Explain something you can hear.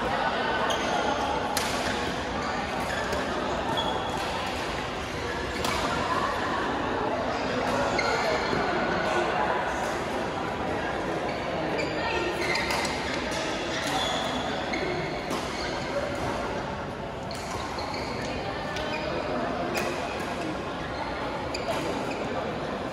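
Many people talk and call out in a large echoing hall.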